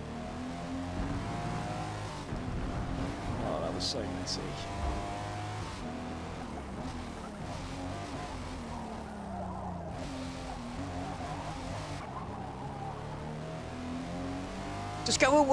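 A car engine revs up and down as gears change.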